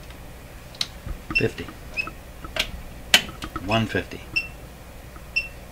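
A knob clicks as it is turned.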